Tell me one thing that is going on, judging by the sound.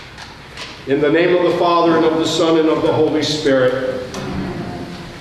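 An elderly man chants a sustained sung phrase in a large echoing hall.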